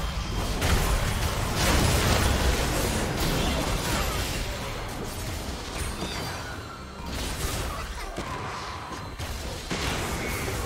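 Magical blasts and zaps burst repeatedly amid a fight.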